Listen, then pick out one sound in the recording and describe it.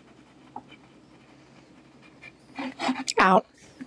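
A pen scratches across paper.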